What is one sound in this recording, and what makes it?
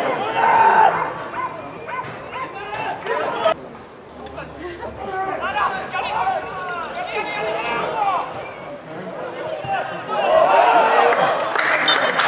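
Young men shout and call out across an open football pitch.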